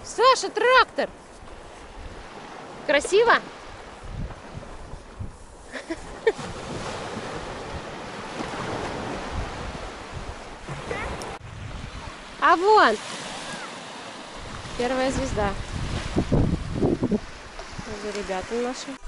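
Gentle waves wash onto a sandy shore.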